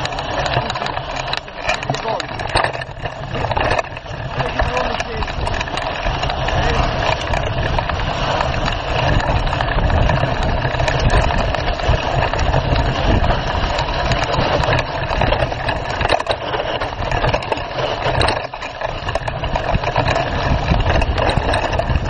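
Tyres rumble and crunch over a dirt track.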